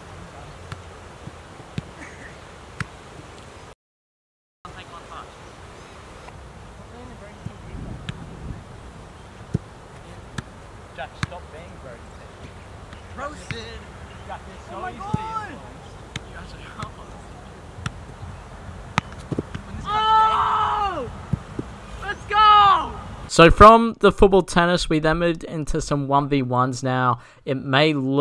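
A football is kicked with dull thuds outdoors.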